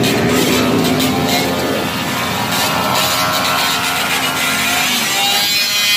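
Many motorcycle engines idle and rumble close by.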